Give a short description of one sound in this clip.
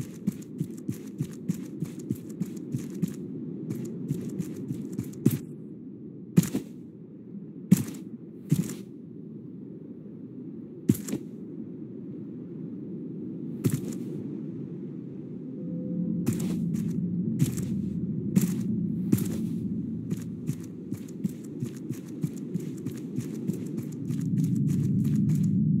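Muffled water swirls and rumbles low and steady, as if heard underwater.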